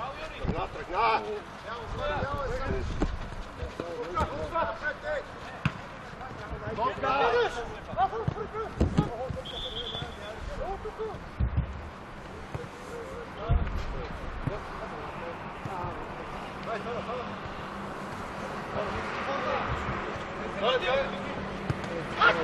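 Men shout and call out to each other across an open outdoor pitch.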